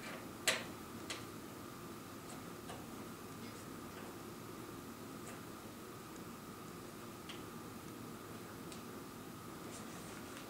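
A metal hex key clicks and scrapes against screws in a metal panel.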